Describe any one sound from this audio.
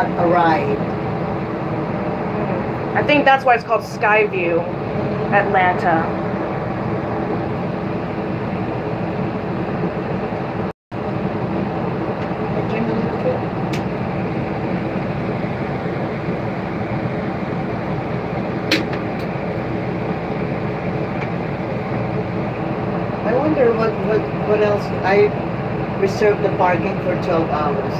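A low, steady hum fills an enclosed cabin as it slowly moves.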